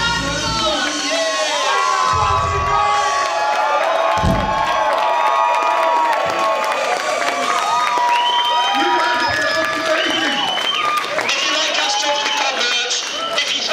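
A crowd of young people cheers and sings along loudly.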